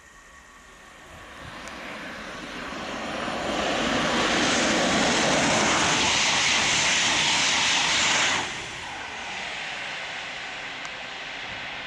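A high-speed train approaches, roars past close by with a rushing whoosh, and fades into the distance.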